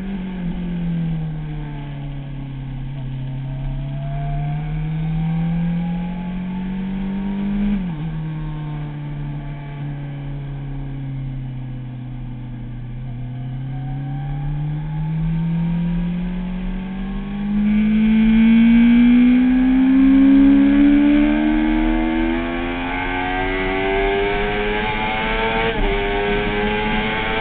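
A motorcycle engine roars close by, revving up through the gears.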